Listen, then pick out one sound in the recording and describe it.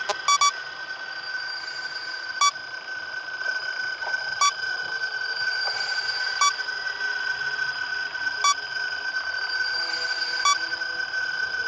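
An electronic alarm beeps sharply about every two seconds.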